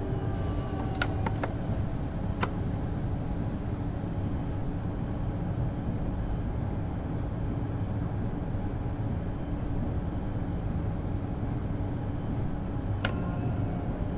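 Train wheels click over rail joints now and then.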